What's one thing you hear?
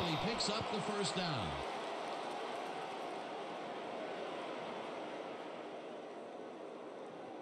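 A large crowd cheers and murmurs steadily in a stadium.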